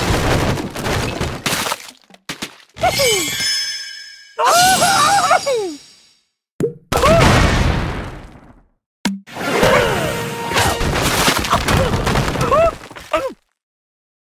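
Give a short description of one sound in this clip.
Wooden blocks and stone crash and tumble.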